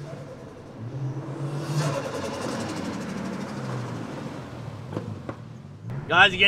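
A car engine hums and revs close by.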